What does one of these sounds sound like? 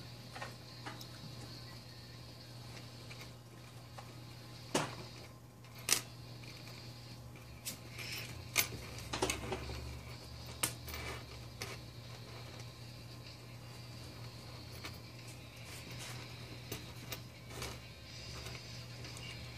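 Metal chain links clink and rattle as hands handle them.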